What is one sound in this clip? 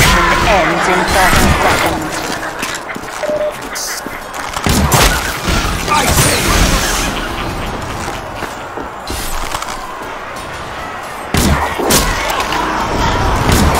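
Gunfire and explosions bang throughout a battle.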